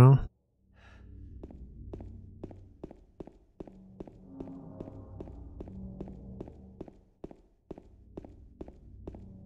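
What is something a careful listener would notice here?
Footsteps echo steadily on a hard floor.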